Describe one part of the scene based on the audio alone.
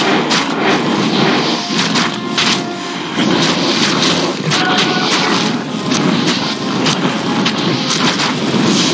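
Fire spells burst and crackle.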